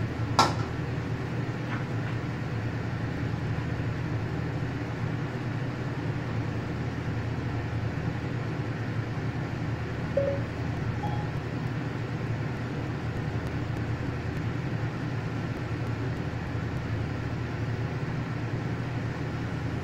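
Food sizzles steadily in a hot wok.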